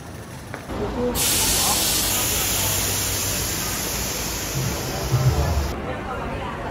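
Street traffic and crowd noise rush outdoors.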